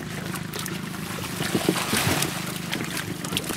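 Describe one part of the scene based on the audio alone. Water pours and splashes out of a lifted net.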